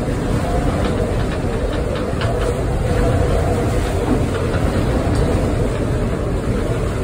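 Strong wind roars and buffets the boat cabin steadily.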